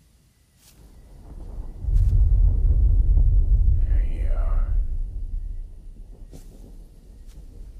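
A man's footsteps crunch softly on leaves and twigs.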